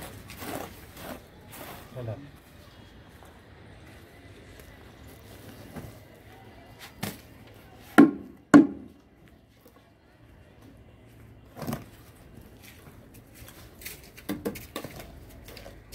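Bare feet shuffle and squelch on wet cement.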